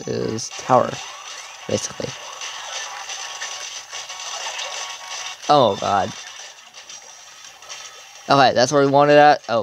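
Video game combat effects play from a small handheld speaker.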